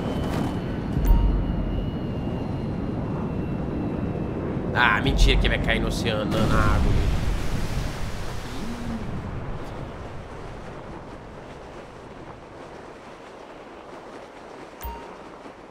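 Wind rushes steadily and slowly fades.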